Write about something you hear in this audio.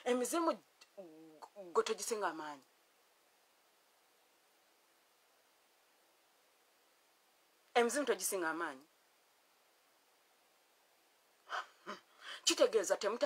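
A woman speaks calmly and close, with pauses between phrases.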